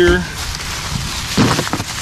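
A plastic bag crinkles.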